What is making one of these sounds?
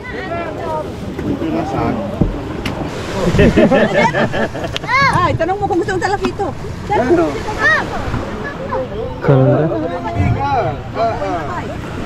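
Several men and women talk and call out close by, overlapping each other.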